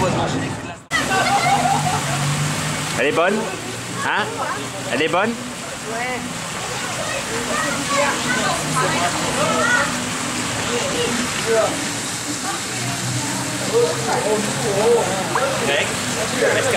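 Water splashes and laps around swimmers.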